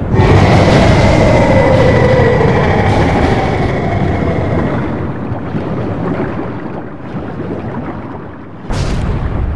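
Stone blocks crash and tumble down, rumbling as they fall.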